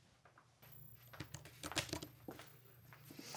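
A girl types on a keyboard.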